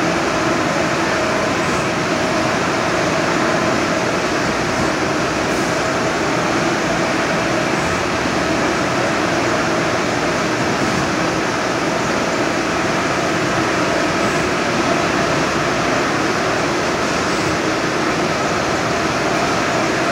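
A large-format inkjet printer hums and whirs while it prints.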